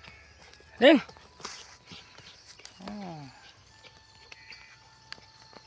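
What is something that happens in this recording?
A dog scratches and digs in loose soil.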